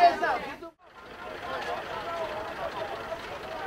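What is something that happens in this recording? A crowd of people murmurs outdoors.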